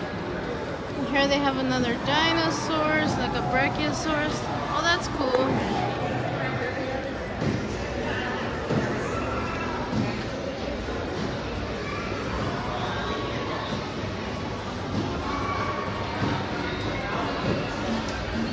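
Many people talk and murmur in a large echoing hall.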